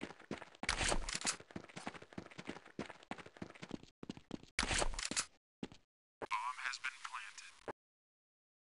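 Footsteps patter quickly in a game.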